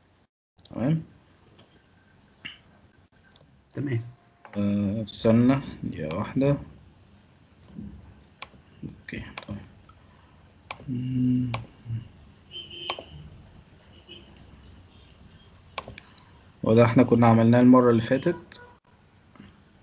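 A young man speaks in bursts over an online call.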